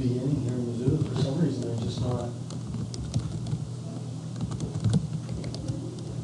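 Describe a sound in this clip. Keys click as someone types on a keyboard.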